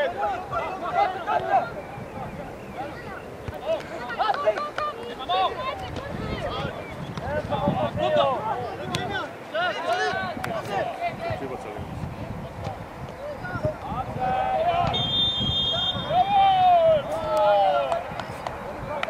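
Young male players shout to each other across an open outdoor field.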